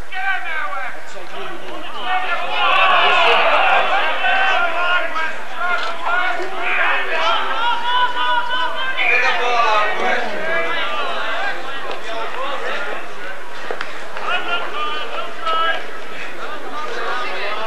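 Men shout and call out at a distance on an outdoor rugby pitch.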